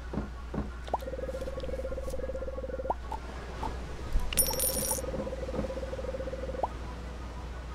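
A soft, steady beeping chatters as dialogue text types out.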